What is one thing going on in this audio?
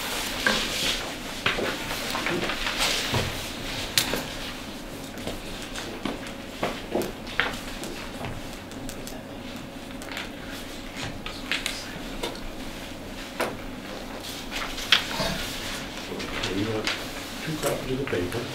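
Large sheets of paper rustle and crinkle on a table.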